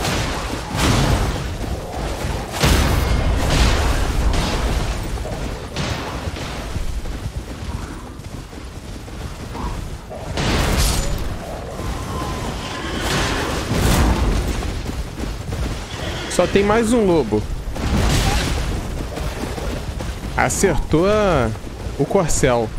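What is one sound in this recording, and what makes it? Weapons clash and strike with heavy thuds.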